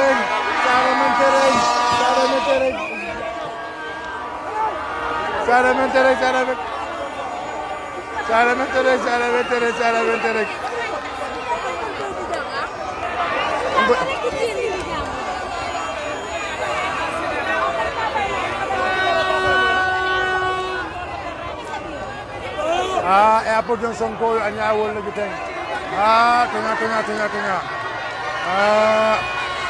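A crowd cheers and shouts all around.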